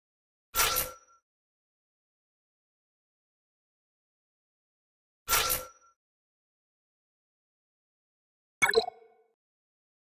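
A game menu plays short click sounds.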